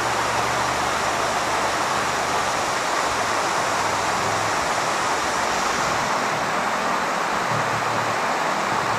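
A small waterfall rushes and splashes over rocks close by.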